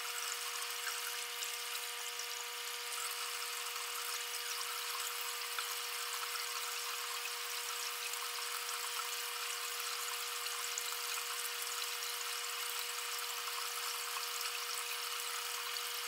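Water trickles and splashes steadily into a pool.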